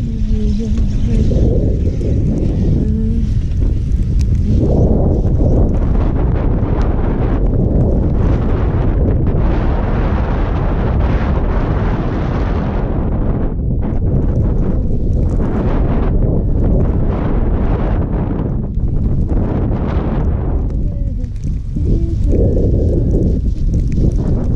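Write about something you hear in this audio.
Wind rushes loudly and steadily past the microphone.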